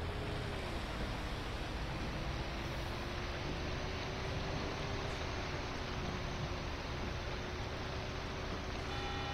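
Heavy rain patters steadily on a bus windscreen.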